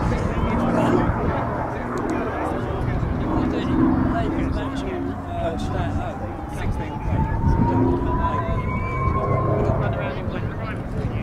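A small propeller plane drones overhead.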